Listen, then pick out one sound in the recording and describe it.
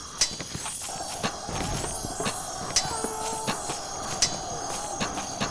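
Weapons strike with sharp, repeated hits.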